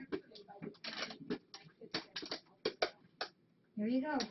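Packing material rustles and crackles.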